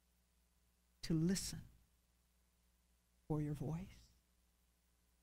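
A woman speaks slowly and fervently into a microphone, with long pauses.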